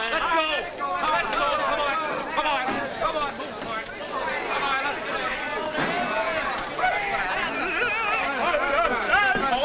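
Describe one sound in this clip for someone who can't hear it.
A crowd of men talk, shout and laugh loudly all at once.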